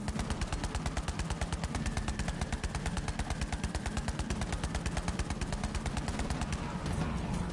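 Guns fire in a fast rattle.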